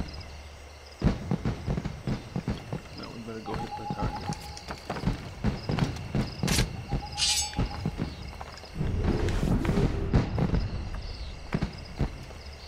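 Footsteps clatter on roof tiles.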